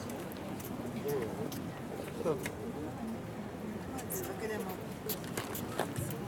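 A man talks at a distance in an open, echoing space.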